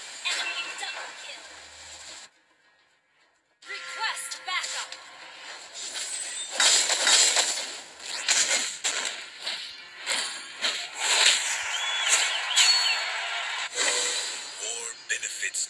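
Blasts and clashes of fantasy game combat effects ring out.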